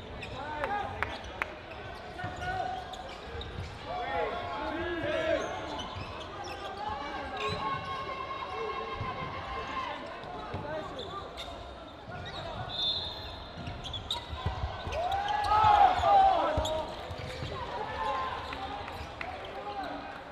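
Balls thud against bodies and the floor.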